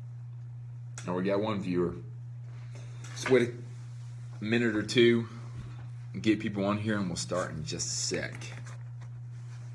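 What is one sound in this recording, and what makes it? A young man talks calmly close to a phone microphone.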